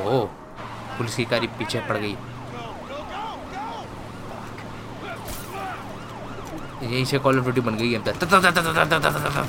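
Men shout urgently at close range.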